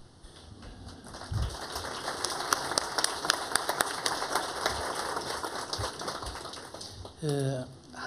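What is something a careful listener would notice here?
An audience applauds in a room.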